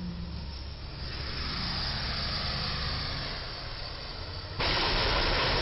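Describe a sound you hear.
A box truck drives by with its engine rumbling.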